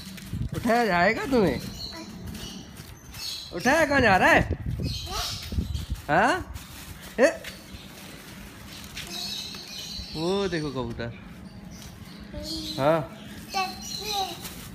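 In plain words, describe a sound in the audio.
A young child speaks loudly and sing-song close by.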